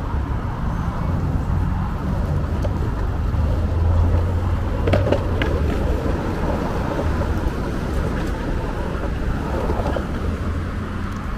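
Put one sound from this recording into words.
Skateboard wheels roll and rumble steadily on pavement.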